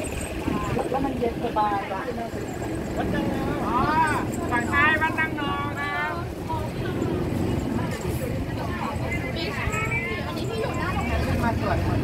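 A woman talks nearby with animation.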